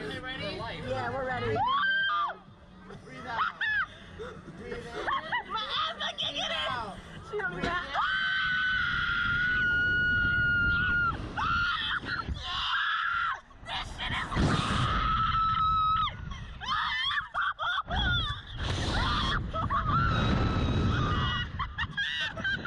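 Two young women laugh excitedly, close by.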